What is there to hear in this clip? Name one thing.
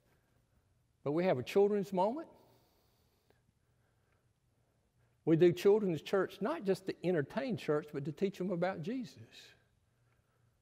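An elderly man speaks calmly into a microphone, with pauses.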